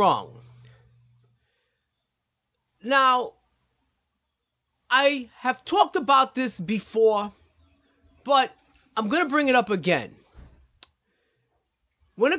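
A middle-aged man speaks calmly and clearly into a nearby microphone, pausing between phrases.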